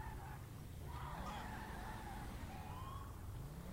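A car engine revs up as the car pulls away.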